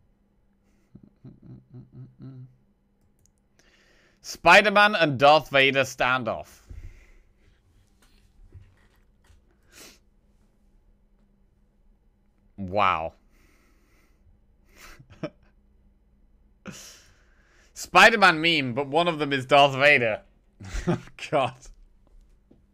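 A young man talks and laughs with animation close to a microphone.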